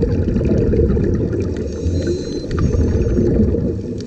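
Air bubbles from a scuba diver gurgle and burble.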